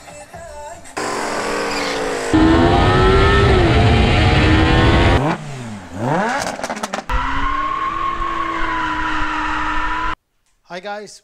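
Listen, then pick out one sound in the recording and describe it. An engine roars loudly as a car races down a track.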